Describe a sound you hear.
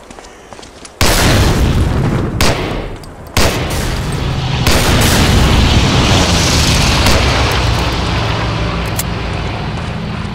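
Explosions boom and rumble close by.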